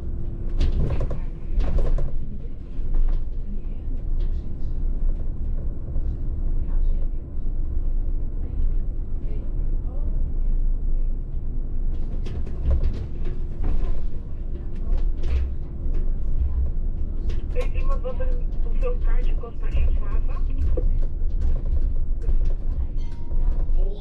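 A bus body rattles and clicks over bumps.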